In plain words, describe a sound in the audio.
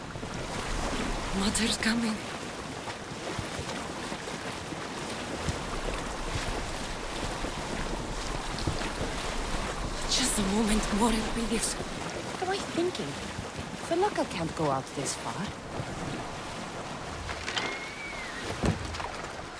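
Water rushes and splashes along the hull of a moving sailing boat.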